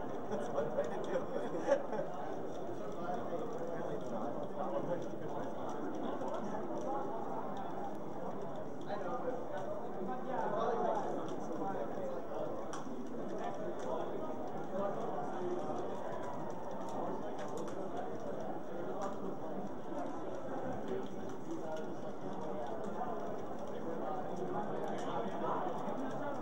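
A crowd of young people murmurs and chatters in the background.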